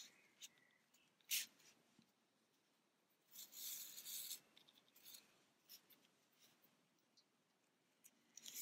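Yarn rustles and scrapes softly as a needle is drawn through it.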